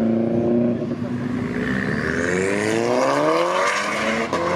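A small car engine revs and rises in pitch as the car accelerates away.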